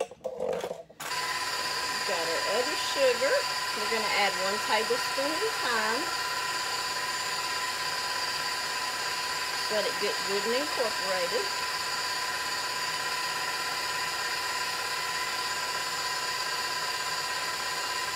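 An electric stand mixer whirs steadily.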